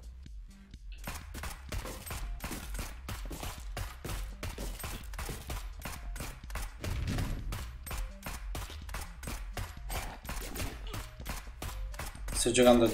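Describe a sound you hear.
A gun fires rapid shots in a video game.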